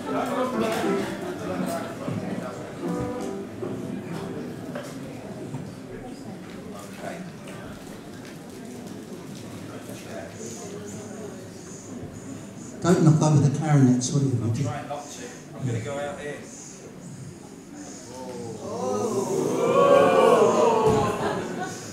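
An elderly man speaks to an audience in an echoing hall.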